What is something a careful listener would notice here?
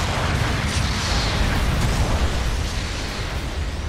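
Thrusters roar steadily.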